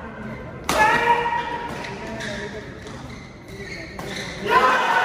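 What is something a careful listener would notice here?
A shuttlecock is struck sharply with a racket in an echoing hall.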